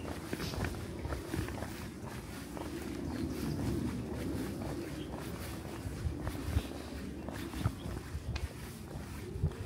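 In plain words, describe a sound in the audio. Footsteps tap steadily on a concrete path.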